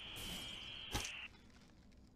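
A gunshot cracks sharply.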